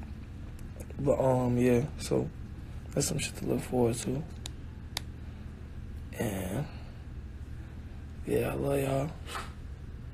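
A young man talks casually and close into a phone microphone, with pauses between phrases.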